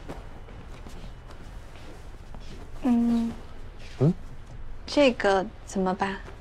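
Cushions thump and rustle softly as they are moved about.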